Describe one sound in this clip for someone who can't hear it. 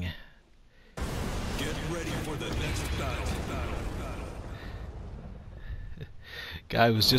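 Flames roar with a rushing whoosh.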